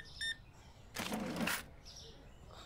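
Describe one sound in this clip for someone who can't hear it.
A cash drawer slides open with a rattle.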